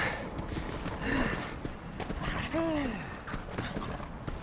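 A creature growls and cries out.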